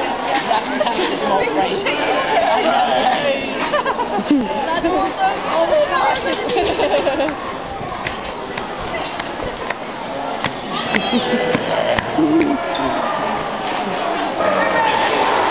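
A crowd of young men and women chatter and laugh close by, outdoors.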